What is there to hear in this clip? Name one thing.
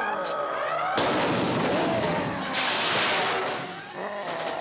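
An explosion roars with a crash of breaking debris.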